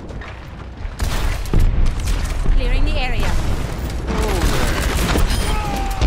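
Energy weapons fire and crackle in a burst.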